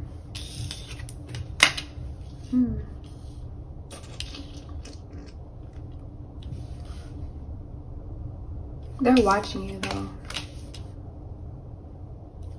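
Playing cards slide and tap softly on a hard tabletop.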